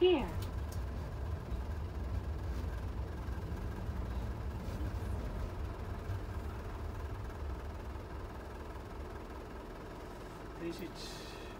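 A bus engine rumbles low and steady, then quietens.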